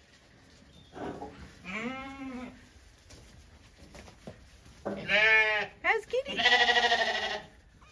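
A cat meows repeatedly and plaintively.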